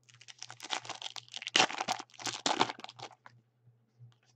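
Hands tear open a foil card wrapper, which crinkles.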